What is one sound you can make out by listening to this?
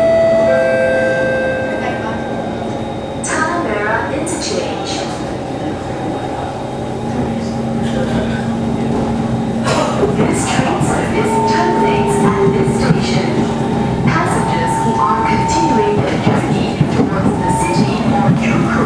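A subway train rumbles and rattles steadily along the track.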